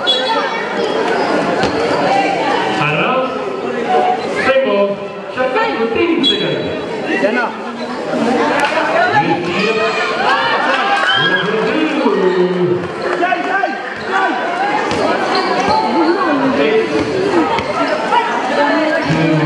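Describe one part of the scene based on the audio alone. A crowd of young spectators cheers and shouts loudly outdoors.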